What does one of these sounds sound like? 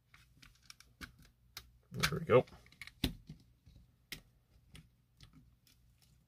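Small plastic parts click and tap as fingers pry apart a plastic casing.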